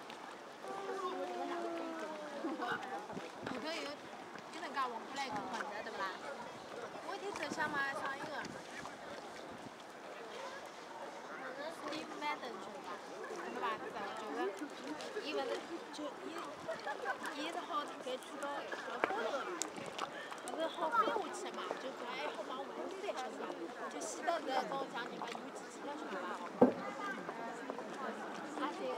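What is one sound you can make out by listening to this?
A crowd of men and women chatters outdoors nearby.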